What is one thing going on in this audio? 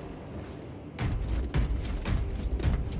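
Heavy armoured footsteps thud and clank on a metal floor.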